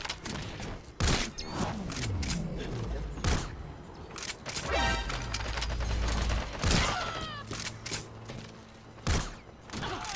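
Gunshots ring out in sharp single bangs.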